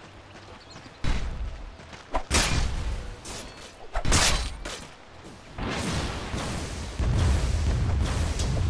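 Loud blasts and crashing hits from a game battle come in bursts.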